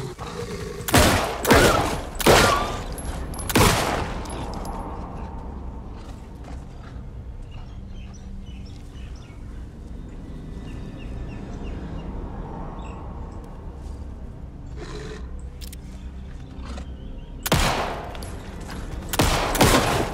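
A pistol fires loud shots in bursts.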